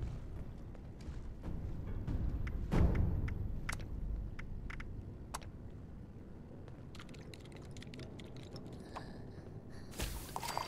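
Soft interface clicks tick as menu items are chosen, quickening into a rapid run of ticks.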